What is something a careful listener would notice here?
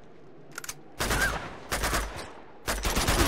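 A rifle fires in short, loud bursts.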